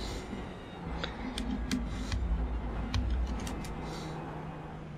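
Gears shift with sharp clicks.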